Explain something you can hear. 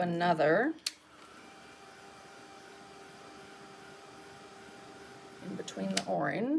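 A heat gun blows with a steady whirring hum.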